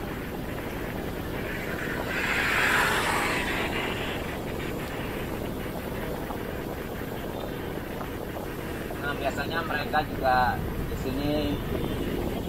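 A motorcycle engine drones past nearby.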